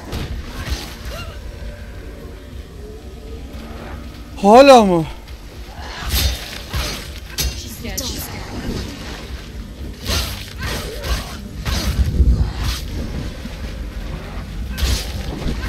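Swords clash and slash in a fierce fight.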